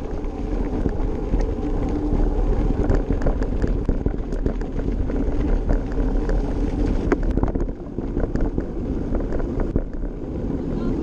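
Bicycle tyres crunch and rattle over a rough dirt track.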